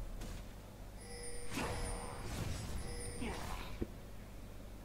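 Video game spell effects whoosh and crackle during a fight.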